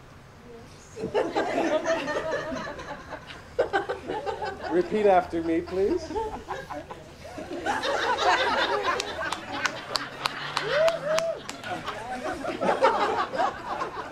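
A group of people laugh loudly.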